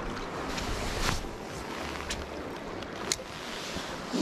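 A fishing reel clicks and whirs as its handle turns.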